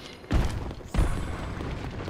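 A loud burst of game sound effects rushes up.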